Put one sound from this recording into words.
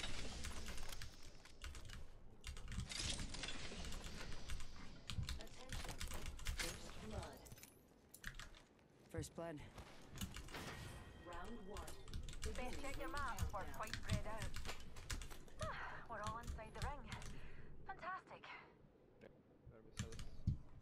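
Video game sound effects click and clatter.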